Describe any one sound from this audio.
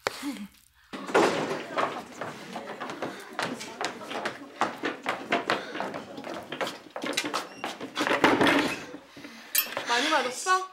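Chairs clatter and scrape on a floor.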